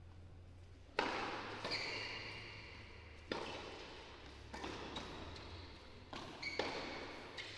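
Tennis rackets strike a ball back and forth with sharp pops.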